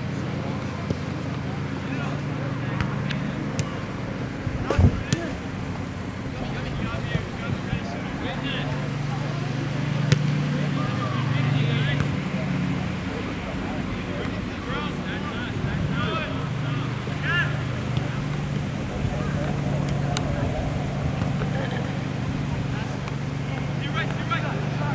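Young men shout to each other across an open field, at a distance.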